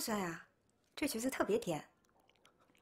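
A young woman speaks softly, close by.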